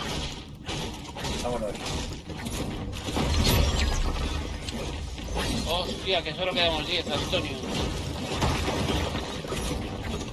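A pickaxe strikes wood with sharp knocks.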